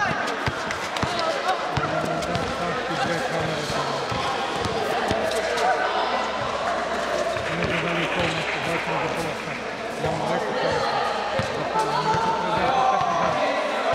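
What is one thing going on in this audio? Young men call out to one another during play.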